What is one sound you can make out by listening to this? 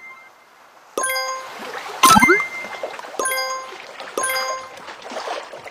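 Bright game chimes ring out several times.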